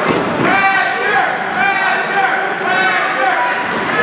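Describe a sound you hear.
Blows land with sharp slaps between two wrestlers.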